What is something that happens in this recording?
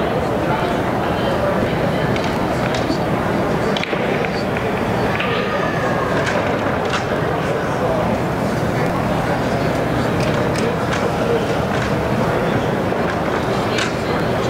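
Many people murmur in a large echoing hall.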